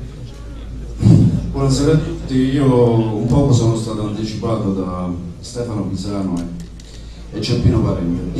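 A man speaks loudly into a microphone through a loudspeaker, in an echoing room.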